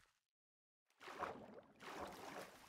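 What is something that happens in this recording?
Water splashes as a figure swims.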